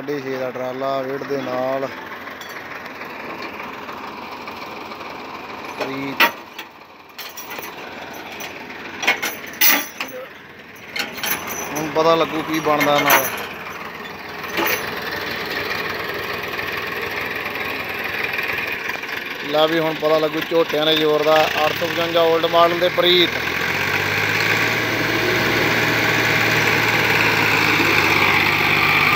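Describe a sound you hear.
Diesel tractor engines run.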